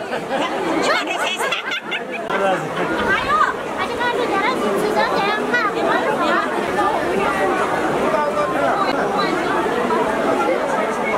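A crowd of men and women talk over one another nearby.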